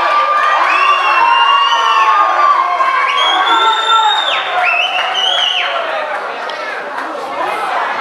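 A crowd cheers and shouts loudly in an echoing room.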